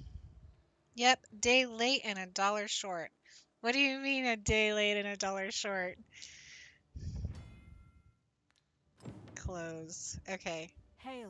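A woman talks with animation, close to a headset microphone.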